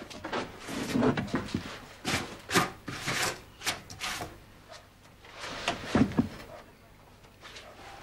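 Wooden chairs knock and scrape on a floor.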